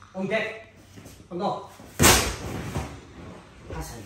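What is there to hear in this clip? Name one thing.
A heavy stone thuds onto a floor.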